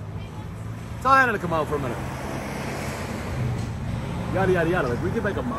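A middle-aged man speaks calmly close by.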